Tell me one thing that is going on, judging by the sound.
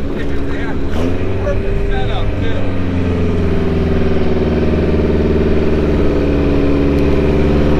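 A truck engine revs up and roars louder.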